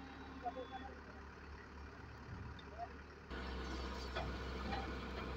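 A truck crane's engine hums steadily nearby.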